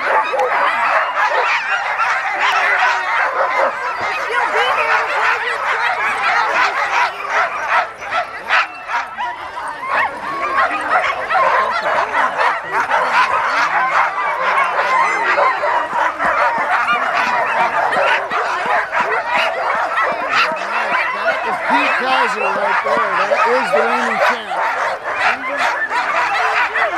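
Many dogs bark and yelp excitedly nearby.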